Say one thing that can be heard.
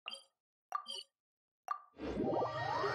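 Short menu chimes click several times.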